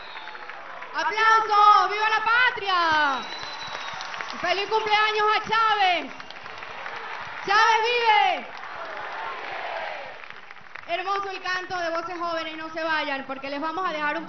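A woman sings with long held notes through loudspeakers.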